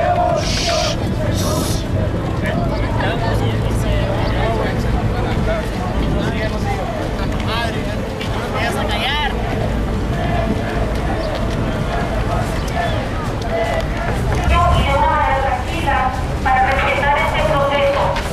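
A large crowd of people chants and shouts outdoors.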